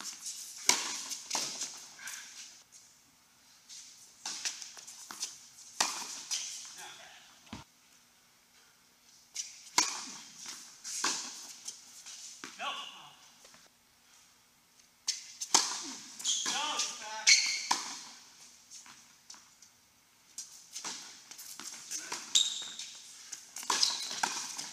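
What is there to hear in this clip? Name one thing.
Tennis balls are struck with rackets and bounce in a large echoing hall.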